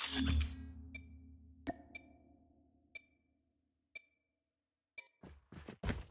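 Short countdown beeps sound once a second.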